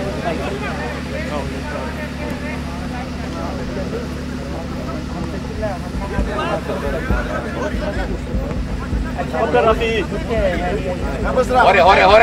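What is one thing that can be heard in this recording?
A ball is kicked with a dull thud.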